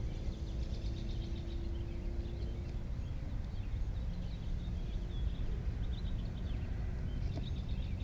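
A knife shaves and scrapes thin curls from a stick of wood.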